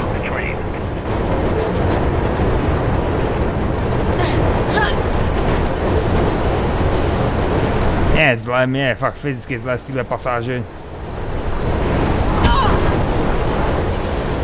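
A train rumbles steadily through an echoing tunnel.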